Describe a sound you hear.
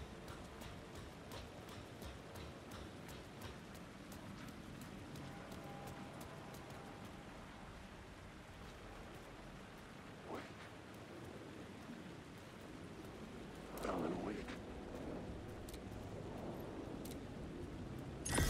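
Footsteps tread on a hard floor.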